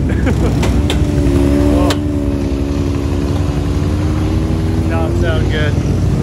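An off-road vehicle's engine idles with a steady hum.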